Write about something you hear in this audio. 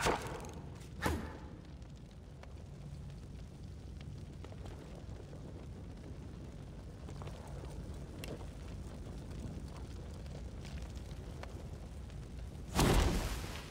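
Flames crackle and roar steadily.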